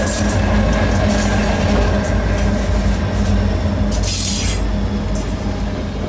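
Freight train wheels clatter and squeal along the rails.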